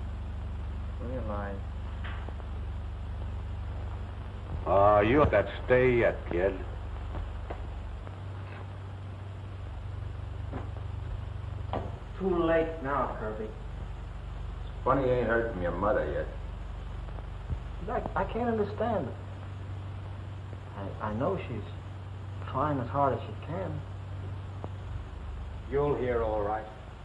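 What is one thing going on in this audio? Men talk back and forth in short bursts.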